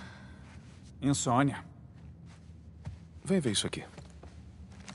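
A young man speaks with a questioning tone.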